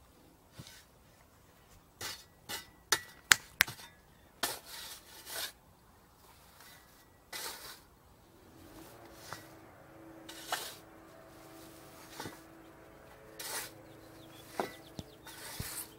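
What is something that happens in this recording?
Loose dirt thuds and scatters as a shovel tosses it.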